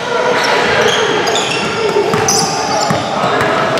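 A basketball bounces on the wooden floor.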